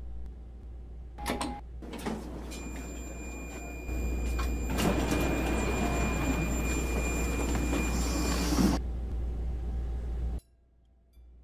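A train's motor hums and rumbles as the train moves along the track.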